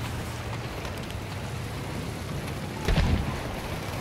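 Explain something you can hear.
Gunfire crackles nearby.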